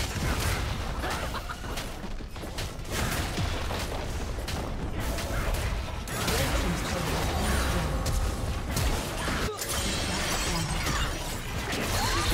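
Magic spells crackle and whoosh in a fast battle.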